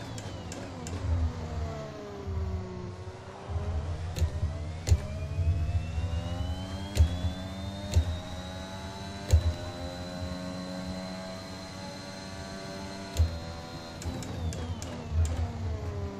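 A racing car engine roars, rising and falling in pitch as it speeds up and slows down.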